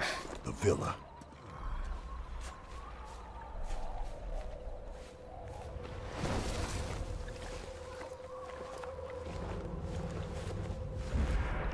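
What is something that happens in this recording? Clothing and grass rustle as a person crawls slowly.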